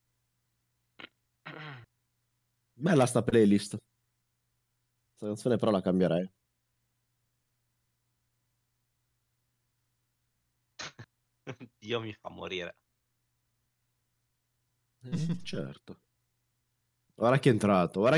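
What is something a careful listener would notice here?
A young man speaks casually into a close microphone, in short bursts with pauses.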